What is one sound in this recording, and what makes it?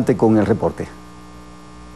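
A man speaks clearly into a microphone in a newsreader's steady tone.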